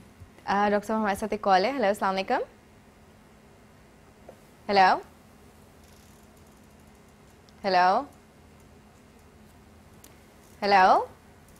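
A young woman speaks calmly and warmly close to a microphone, in short phrases with long pauses.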